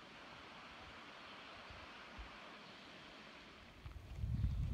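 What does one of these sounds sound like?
A stream babbles softly nearby.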